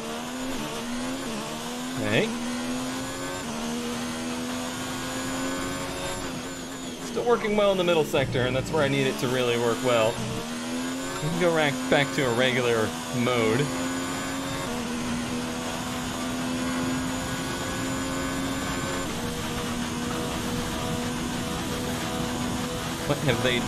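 A racing car engine whines at high revs, rising and dropping as it shifts gears.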